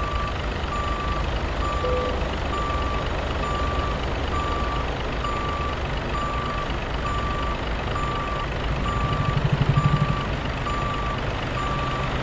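A truck engine rumbles low as the truck backs up slowly.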